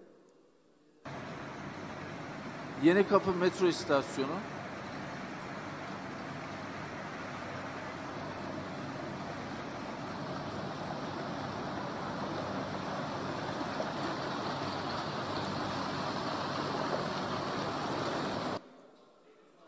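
Water rushes and splashes loudly.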